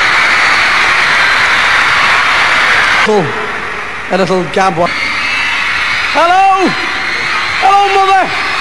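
A large crowd of young people screams and cheers loudly in a big hall.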